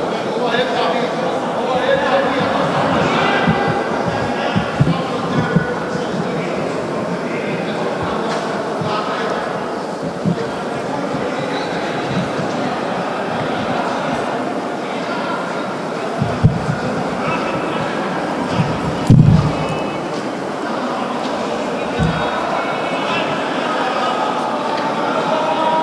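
A large crowd of men murmurs and calls out outdoors.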